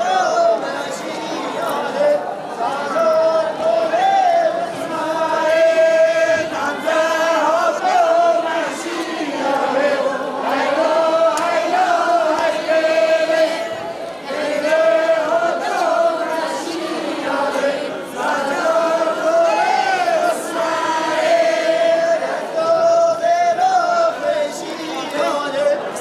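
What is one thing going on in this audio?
Loud, lively music plays through loudspeakers in a large hall.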